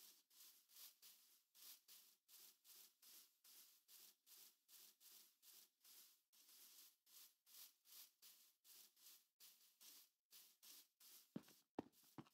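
Footsteps pad quickly and softly over grass.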